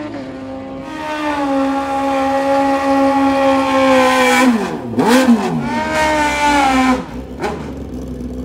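A motorcycle engine revs hard in sharp bursts.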